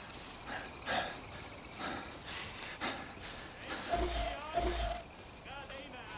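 Footsteps rustle through tall grass and undergrowth.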